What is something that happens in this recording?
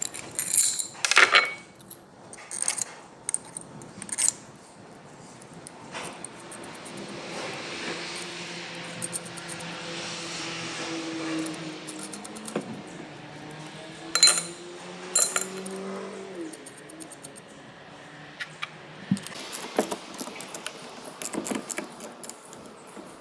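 Metal parts clink and knock against an engine.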